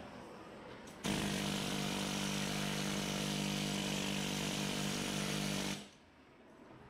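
An air-powered tool buzzes steadily against metal.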